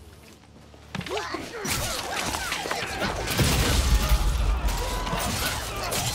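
Weapons clash and magic blasts crackle in a loud fight.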